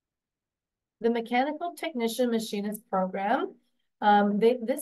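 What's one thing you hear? A woman speaks calmly into a microphone, as if presenting on an online call.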